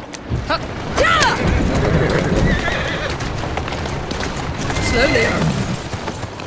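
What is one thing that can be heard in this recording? A horse whinnies.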